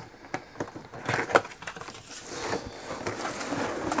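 A cardboard box lid scrapes and rustles as it is lifted.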